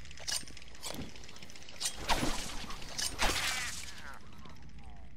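A thrown object whooshes through the air.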